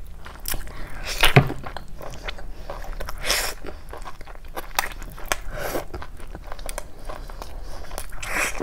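A young woman slurps and sucks on meat close to a microphone.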